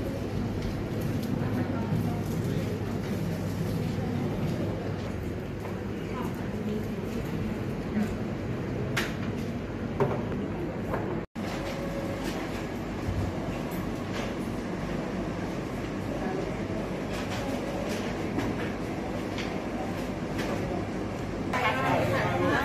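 Women talk quietly in a room.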